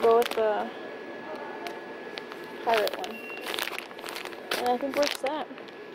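Plastic packaging crinkles in hands.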